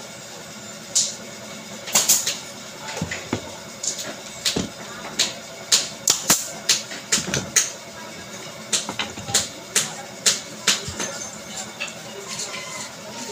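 Wooden sticks knock and clatter against each other.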